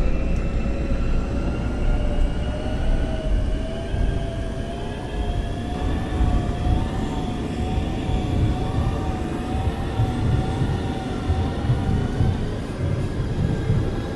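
An electric train's motor whines, rising steadily in pitch as it speeds up.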